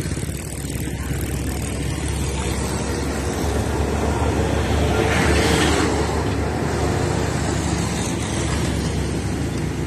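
Heavy trucks rumble past along a road.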